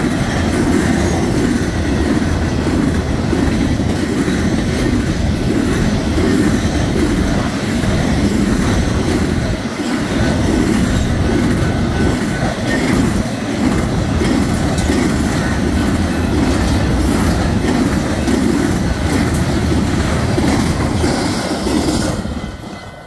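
A long freight train rumbles past close by, its wheels clattering over the rails.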